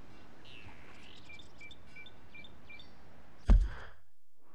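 Wind blows softly through grass outdoors.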